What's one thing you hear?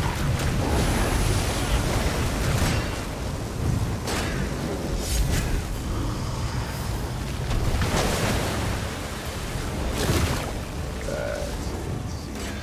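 Electric bolts zap and sizzle.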